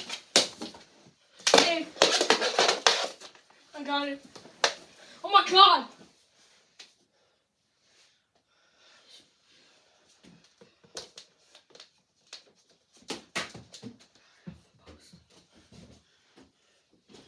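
Hockey sticks clack and scrape on the floor.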